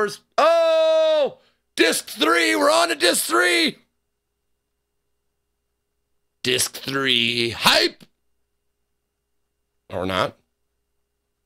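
A man speaks and exclaims with animation, close to a microphone.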